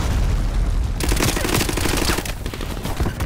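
A grenade explodes with a loud boom.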